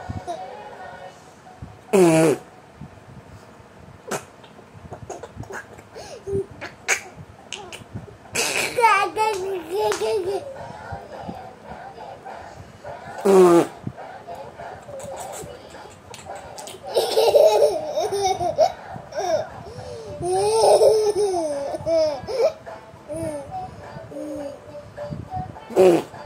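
A baby girl babbles and squeals close by.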